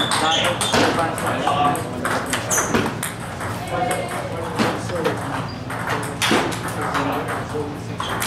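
Several men talk in the background of an echoing room.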